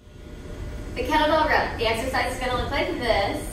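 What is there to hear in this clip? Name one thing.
A woman speaks with animation in a room with a slight echo.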